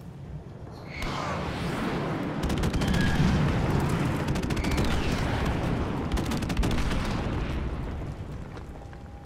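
An explosion booms and rumbles loudly, then fades.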